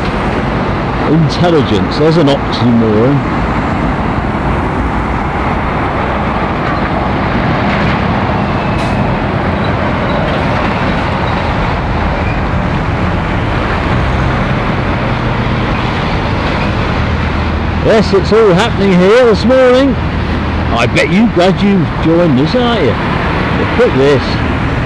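Heavy lorry engines rumble as lorries drive slowly around a roundabout.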